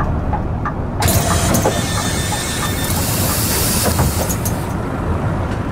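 Bus doors open with a loud hiss of air.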